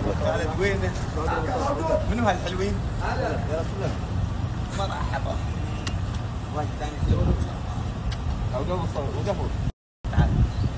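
A middle-aged man talks outdoors.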